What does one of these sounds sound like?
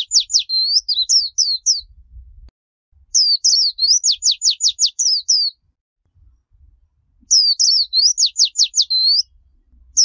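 A small bird sings rapid, high chirping trills close by.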